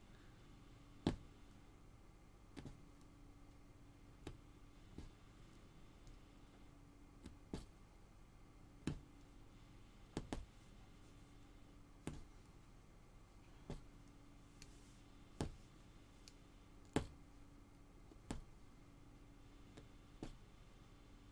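A needle pokes through taut cloth with soft regular taps.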